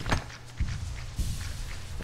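A blade slashes with quick, sharp swishes.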